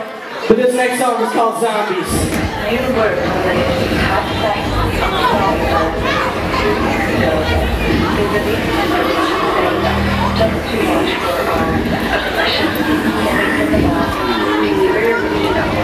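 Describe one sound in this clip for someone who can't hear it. A man raps loudly into a microphone over a loudspeaker system.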